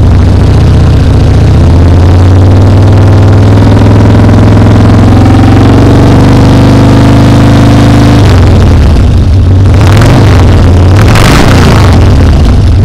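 A motorcycle engine revs up in bursts.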